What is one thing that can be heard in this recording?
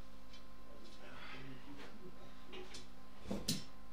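A wooden pole knocks and clatters.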